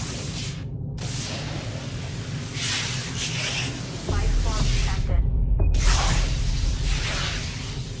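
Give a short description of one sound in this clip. A mining laser crackles and hisses against rock.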